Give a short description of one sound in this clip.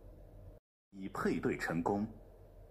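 A small speaker plays a short bright jingle.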